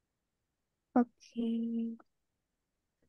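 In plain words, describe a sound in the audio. A young woman speaks briefly over an online call.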